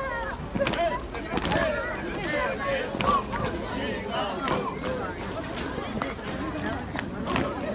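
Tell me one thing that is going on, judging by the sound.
A crowd of men and women sing together outdoors.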